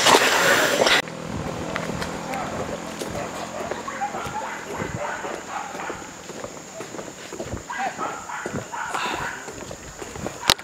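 Footsteps scuff along a paved road outdoors.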